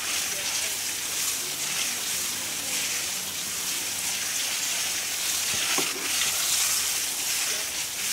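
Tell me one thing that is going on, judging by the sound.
Water sprays steadily from a garden hose, splashing onto wood and soil.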